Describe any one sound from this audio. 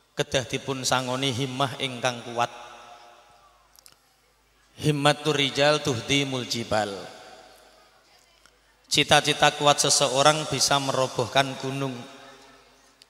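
A man speaks with animation into a microphone, heard through loudspeakers with echo.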